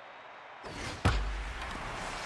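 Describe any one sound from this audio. A bat cracks sharply against a baseball.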